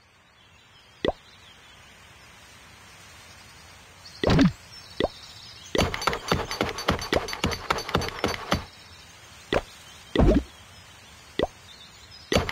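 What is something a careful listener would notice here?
Soft game chimes pop as menus open.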